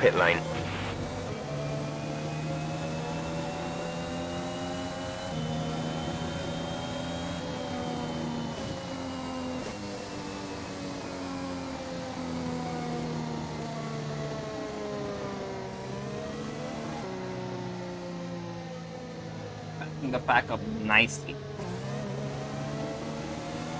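A racing car engine whines loudly, its pitch rising and falling as the car speeds up and slows down.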